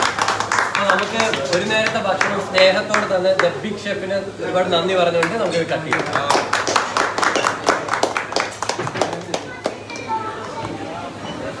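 A group of men clap their hands in rhythm.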